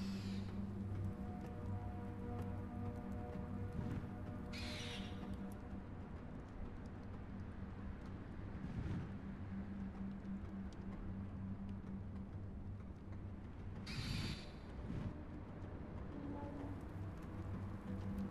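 A large bird's wings beat steadily.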